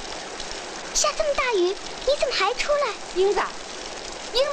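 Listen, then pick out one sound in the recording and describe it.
A young girl speaks with concern, close by.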